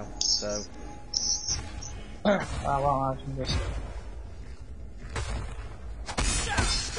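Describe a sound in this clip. Magic spells burst and whoosh in a fight.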